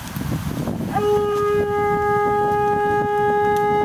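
A horn sounds a long, steady, loud note outdoors.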